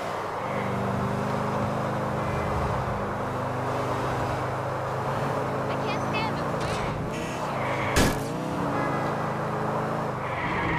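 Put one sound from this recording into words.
A car engine hums steadily, rising and falling with speed.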